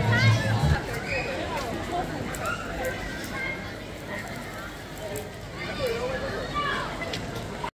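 A crowd of men and women chatter and talk nearby outdoors.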